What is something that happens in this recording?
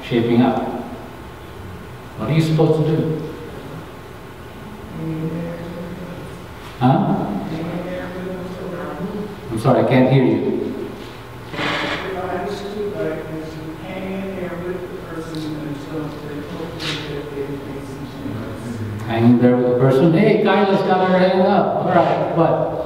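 An elderly man speaks with animation through a microphone in an echoing room.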